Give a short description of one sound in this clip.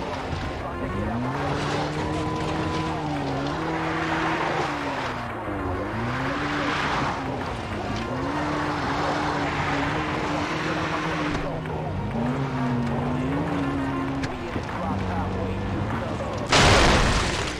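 Tyres rumble over a dirt track.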